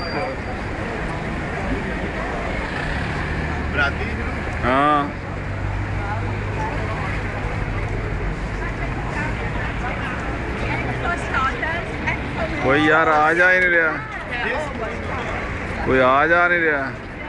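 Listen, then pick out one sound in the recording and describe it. Traffic rumbles steadily on a busy street outdoors.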